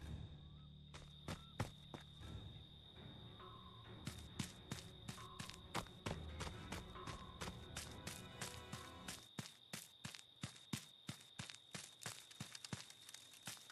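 Footsteps run quickly over leaves and twigs.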